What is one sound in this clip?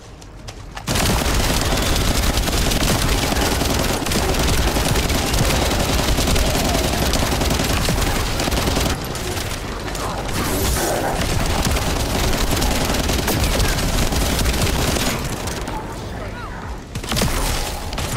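Game explosions and energy blasts roar loudly.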